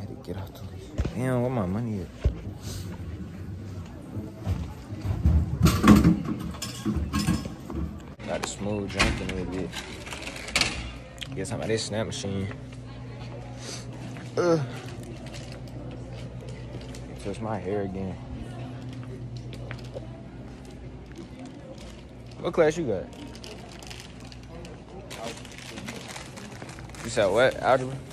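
A young man talks casually close to a phone microphone.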